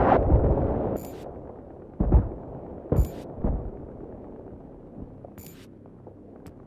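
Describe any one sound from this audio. Soft electronic menu chimes sound several times.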